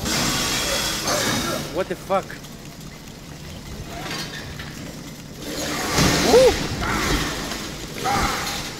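A chainsaw revs and buzzes loudly.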